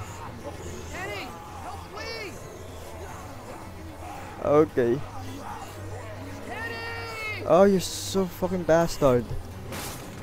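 A boy cries out for help.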